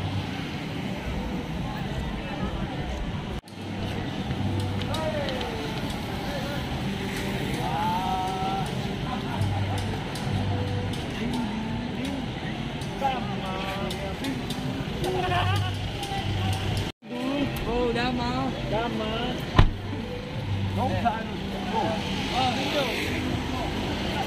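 A busy street murmurs outdoors with a steady crowd hum.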